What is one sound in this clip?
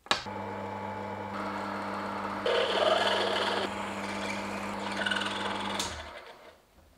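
A small lathe motor hums steadily.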